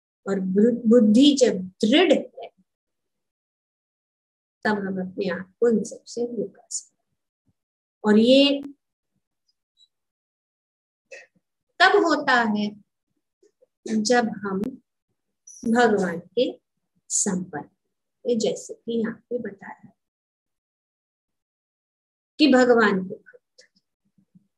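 An elderly woman speaks calmly in short phrases over an online call.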